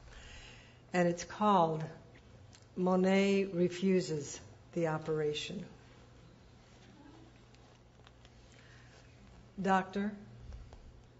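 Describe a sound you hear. A middle-aged woman speaks calmly and a little distantly.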